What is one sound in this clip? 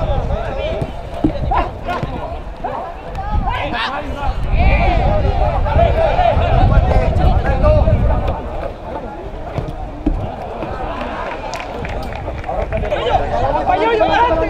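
A football is kicked on a grass pitch.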